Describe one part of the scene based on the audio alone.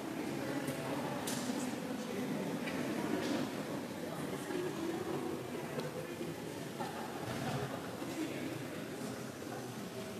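Faint voices murmur in a large echoing hall.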